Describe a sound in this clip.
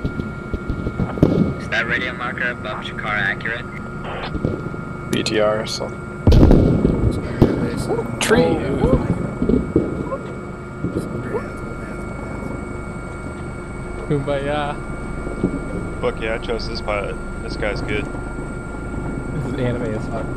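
A helicopter engine and rotor drone steadily in the cockpit.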